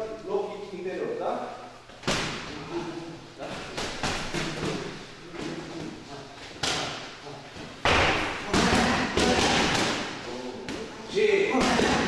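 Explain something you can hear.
Kicks and punches thud against padded mitts in an echoing hall.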